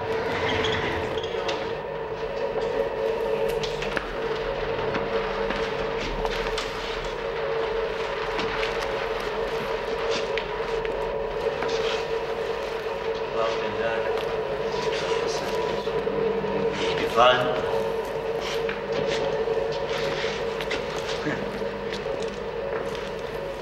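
Footsteps shuffle and scrape on a hard floor.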